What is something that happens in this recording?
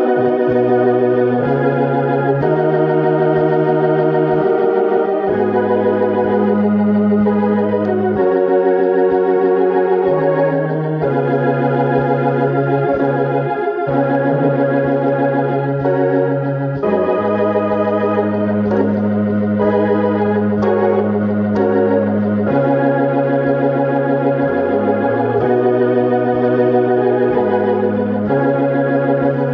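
An electric keyboard plays a steady flowing chord pattern with a deep bass line.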